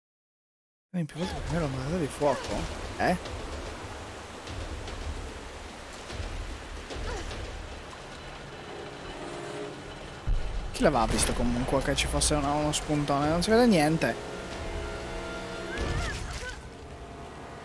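Rushing water roars and splashes.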